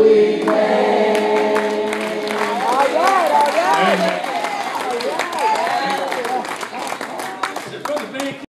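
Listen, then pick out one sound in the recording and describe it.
A man sings and preaches loudly through a microphone in an echoing hall.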